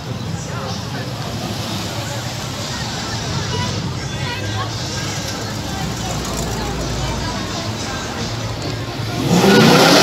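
A crowd of people chatter outdoors.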